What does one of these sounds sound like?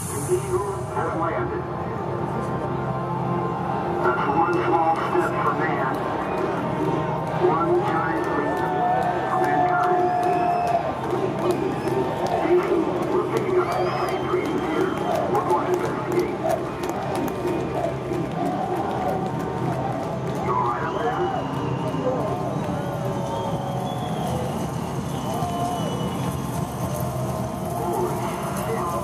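A large outdoor crowd chatters and murmurs steadily.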